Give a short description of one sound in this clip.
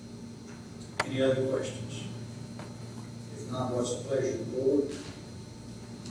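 A man speaks through a microphone at a podium, with short pauses.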